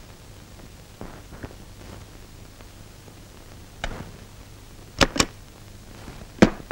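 Photographs rustle and tap as they are handled.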